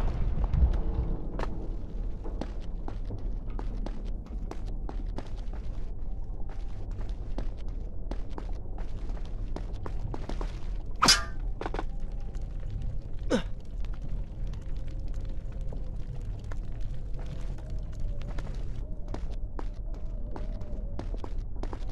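Quick footsteps patter on stone as a figure runs.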